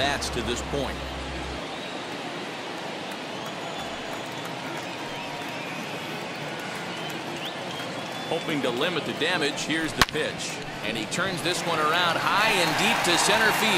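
A large stadium crowd murmurs and then cheers.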